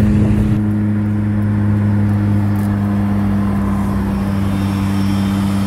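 Road noise rumbles steadily from inside a moving car.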